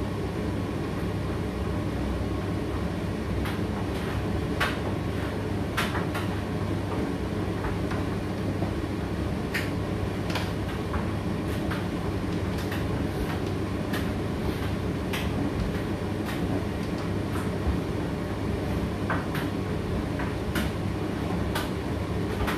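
A condenser tumble dryer hums as it runs.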